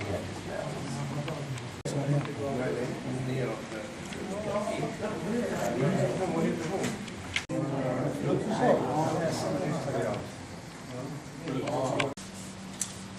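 Elderly men and women chat around tables in a room with a slight echo.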